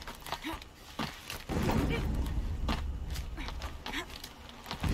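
Hands and feet scrape and thud on stone while climbing.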